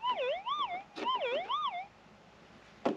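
A metal detector gives a warbling, wavering tone.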